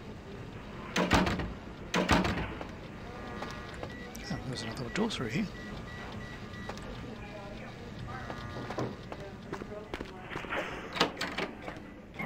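A heavy door clicks and swings open.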